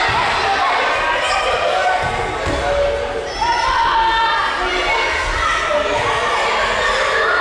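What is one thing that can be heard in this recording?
Children shout and cheer loudly in a large echoing hall.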